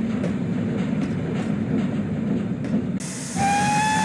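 A train rumbles along the rails.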